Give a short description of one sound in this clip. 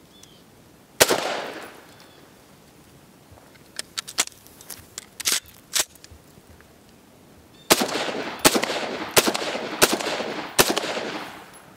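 A rifle fires single shots outdoors, each echoing off the surroundings.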